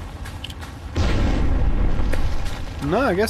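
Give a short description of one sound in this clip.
An explosion booms loudly and rumbles.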